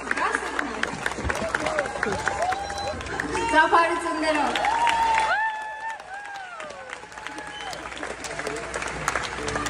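A crowd claps in a large hall.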